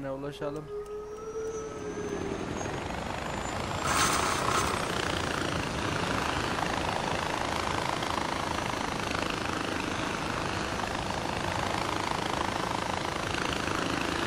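A pulley whirs along a steel cable, growing louder and steady as it speeds up.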